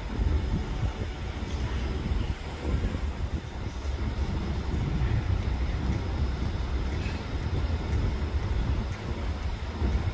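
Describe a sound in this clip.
A large truck's engine idles nearby.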